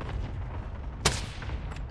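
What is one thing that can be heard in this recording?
A gunshot cracks sharply in a video game.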